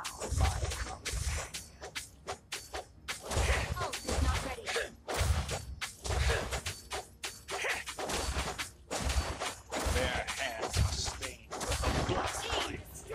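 Game spell effects boom and crackle in bursts.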